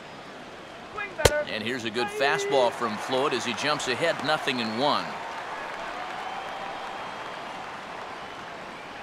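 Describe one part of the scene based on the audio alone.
A large crowd cheers loudly, then dies down.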